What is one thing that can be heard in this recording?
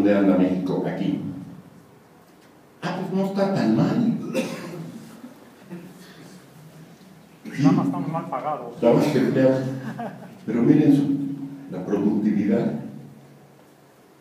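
An elderly man speaks calmly through a microphone in a room with a slight echo.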